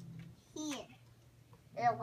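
Plastic toys clatter on the floor.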